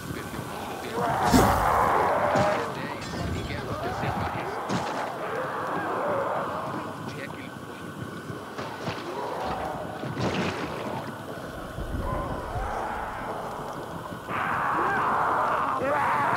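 Explosions boom in short, heavy bursts.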